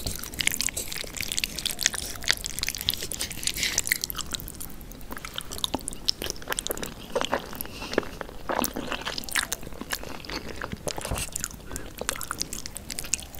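Wooden utensils scrape and clack against a plate of noodles close up.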